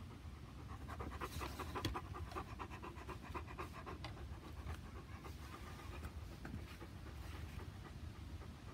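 A Bernese mountain dog pants.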